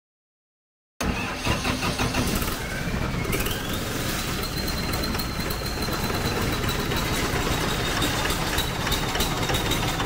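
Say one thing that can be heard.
A diesel engine starts and runs steadily with a loud rumble.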